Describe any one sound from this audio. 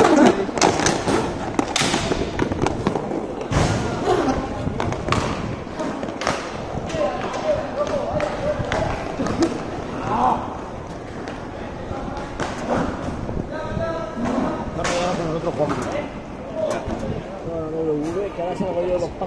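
Skate wheels roll and scrape on a hard outdoor rink.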